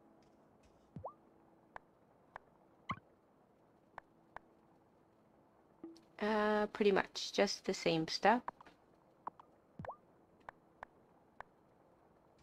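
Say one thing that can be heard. Short soft clicks and blips of a game menu sound now and then.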